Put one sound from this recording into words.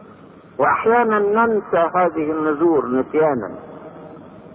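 An elderly man speaks slowly and calmly through a microphone.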